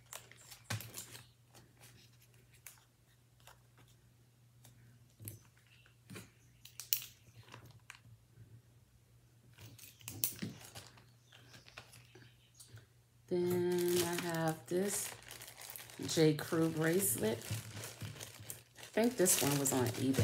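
A plastic bag crinkles and rustles in handling.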